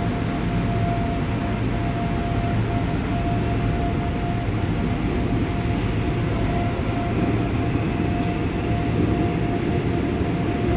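A subway train rumbles steadily along the track.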